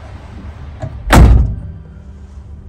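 A van door slams shut.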